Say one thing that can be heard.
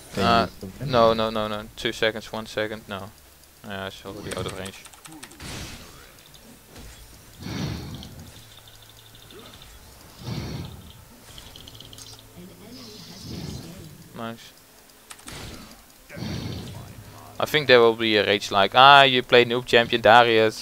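Magic spells burst and crackle in a video game battle.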